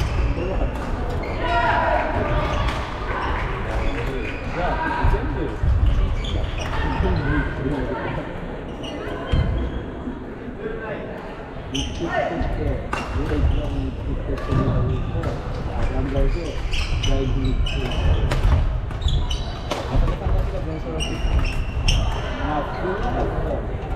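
Men and women chatter and call out in the distance of the hall.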